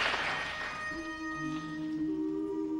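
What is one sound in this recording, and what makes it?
A group of men begins singing in close harmony.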